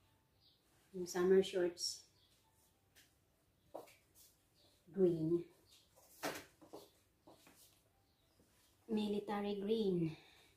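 A young woman speaks calmly and close by, in short phrases.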